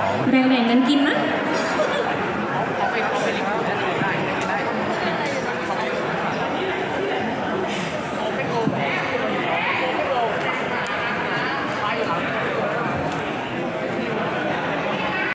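A young man talks into a microphone over loudspeakers.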